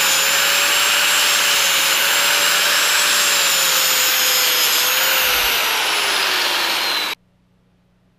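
An angle grinder whines loudly and grinds metal with a harsh screech.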